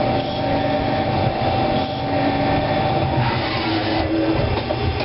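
A lathe spindle whirs loudly.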